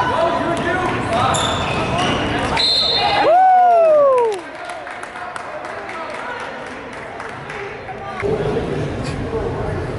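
Sneakers squeak on a hard court floor.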